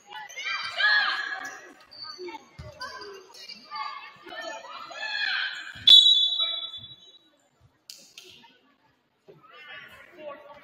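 Young women shout to each other in an echoing gym.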